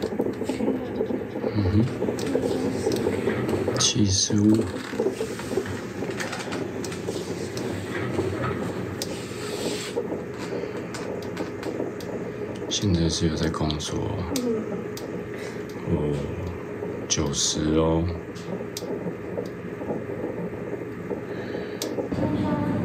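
A fetal heart monitor pulses with a fast, whooshing heartbeat.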